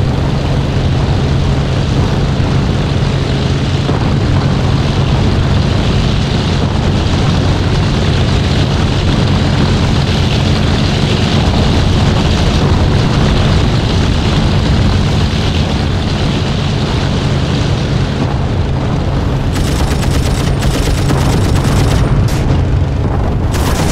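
A propeller engine drones steadily and loudly.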